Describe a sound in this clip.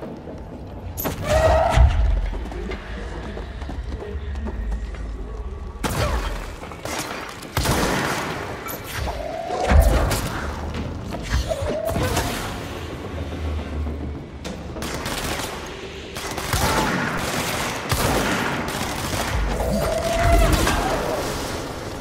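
Explosions boom and debris crashes.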